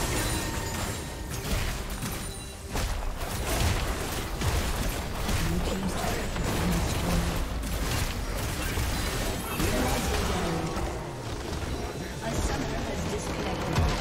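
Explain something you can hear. Spell blasts, hits and impacts crackle and boom in a busy battle.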